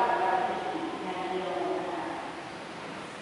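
A man chants through a microphone in a large echoing hall, and the voice fades away.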